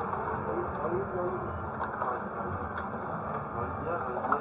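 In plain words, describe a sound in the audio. A machine pours liquid into a cup with a steady trickle.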